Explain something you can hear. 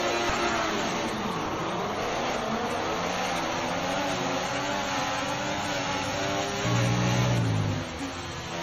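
A racing car engine screams at high revs, rising and falling as it shifts gears.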